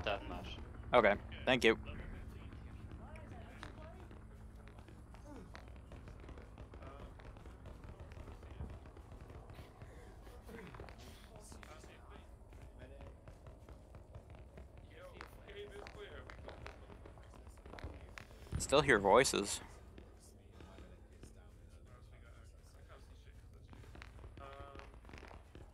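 Footsteps walk over stone.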